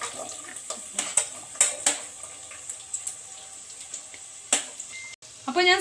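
Chopped onions drop into a metal pan.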